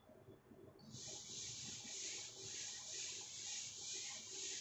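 A marker squeaks and scratches on a whiteboard.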